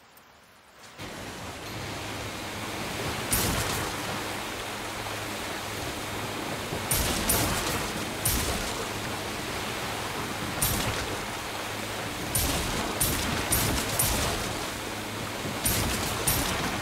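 Water splashes and churns around a moving boat.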